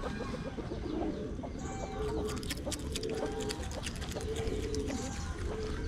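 An otter chews food with wet crunching.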